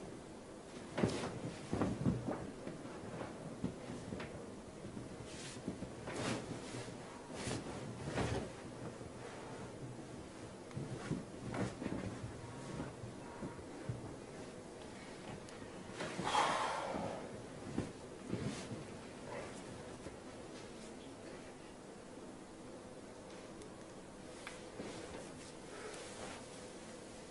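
A young man breathes heavily and moans close by.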